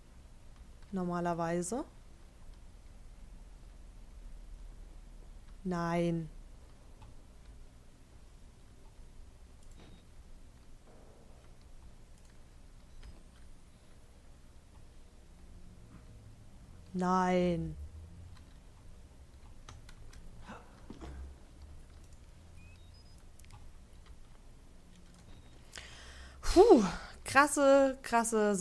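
A young woman speaks into a close microphone.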